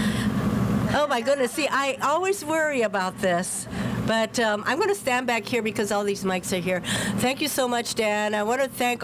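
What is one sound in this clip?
A woman speaks warmly into a microphone, heard through a loudspeaker outdoors.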